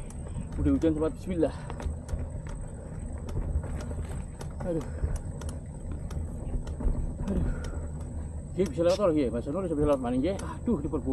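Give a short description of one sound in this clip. Bicycle tyres roll over a bumpy dirt path.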